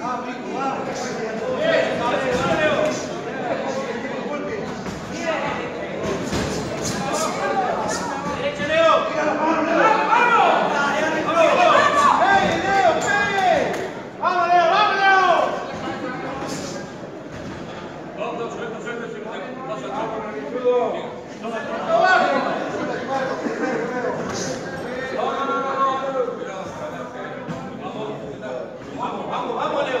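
A crowd shouts and cheers in an echoing hall.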